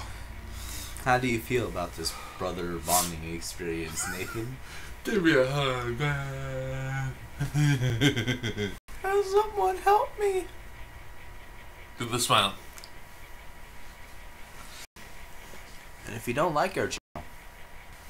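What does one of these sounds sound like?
A second young man talks and laughs nearby.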